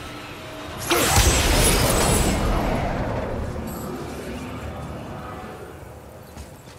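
A heavy stone mechanism rumbles as it turns.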